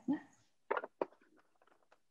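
A whisk clinks against a glass jar.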